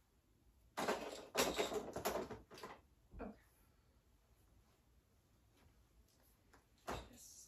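Plastic toys clatter and rustle as a box is rummaged through.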